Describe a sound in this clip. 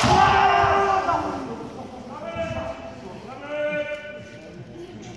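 Young men shout sharp, drawn-out cries in a large echoing hall.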